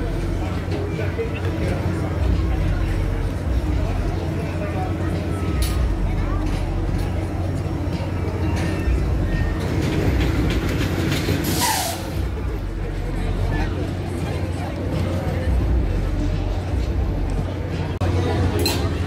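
A fairground ride hums steadily as it spins.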